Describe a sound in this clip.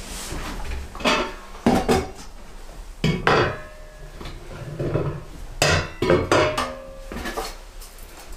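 Metal parts clank and knock against each other.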